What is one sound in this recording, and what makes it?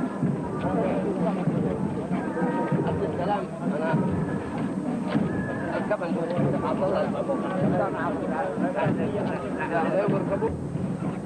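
A crowd of men chatters and calls out nearby, outdoors.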